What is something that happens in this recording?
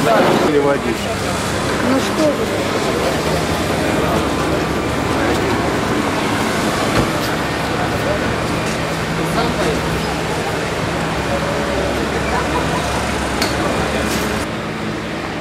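Traffic hums along a street.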